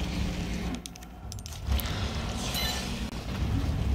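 An electronic keypad beeps as it unlocks.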